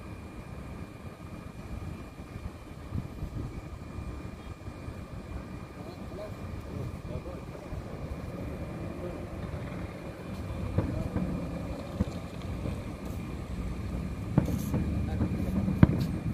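Fireworks boom and crackle in the distance.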